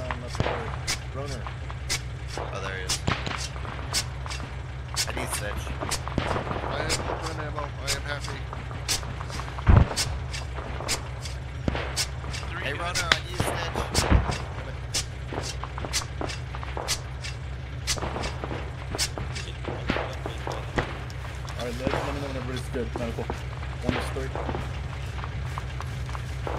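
A shovel digs into earth with repeated thuds.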